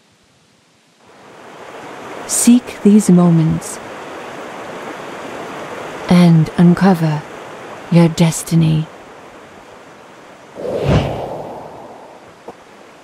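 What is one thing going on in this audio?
A waterfall rushes and splashes nearby.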